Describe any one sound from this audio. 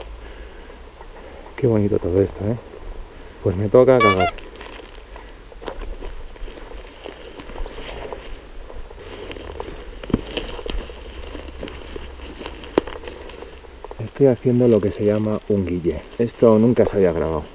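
Ferns and undergrowth rustle and swish against the body.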